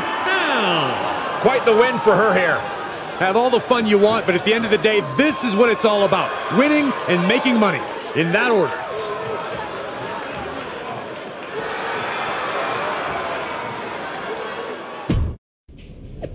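A large crowd cheers and roars in an arena.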